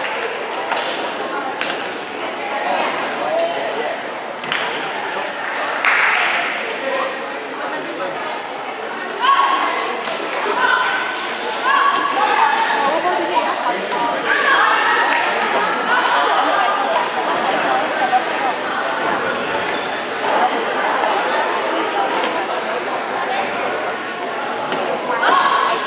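Shuttlecocks are struck with rackets in sharp pops.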